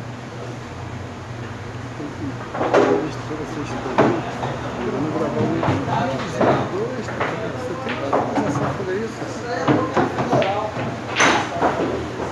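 Pool balls clack together as a cue strikes.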